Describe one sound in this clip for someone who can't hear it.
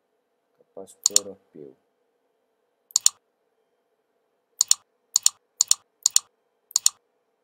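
A computer mouse clicks sharply, in quick pairs, several times.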